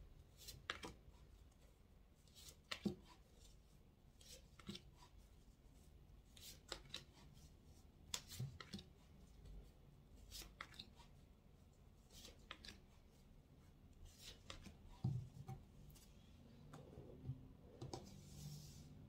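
Playing cards tap and click softly on a table.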